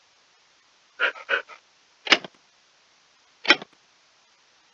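A wooden trapdoor creaks open and shut.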